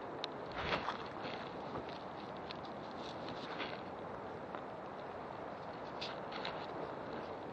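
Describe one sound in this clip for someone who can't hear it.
Footsteps crunch through dry leaves and twigs.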